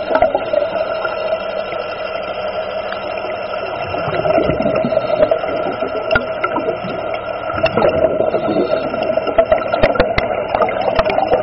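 Water swirls and bubbles in a muffled, underwater rush.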